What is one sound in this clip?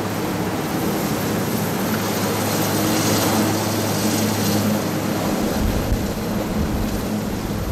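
A helicopter's rotor thumps and its engine roars loudly nearby as it lands.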